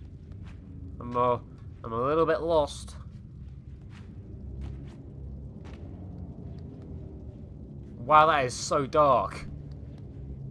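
A young man speaks in short, lively bursts close to a microphone.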